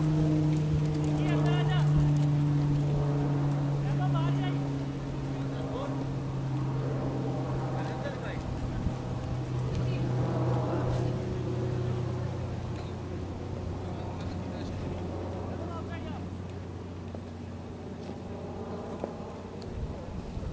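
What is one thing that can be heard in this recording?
Men talk and call out at a distance outdoors.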